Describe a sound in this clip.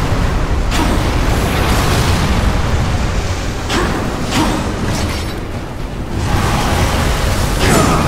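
Flames roar in a burst of fire.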